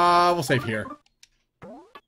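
A short electronic chime plays.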